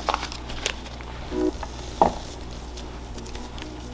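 Hands scoop crumbly dough from a tray.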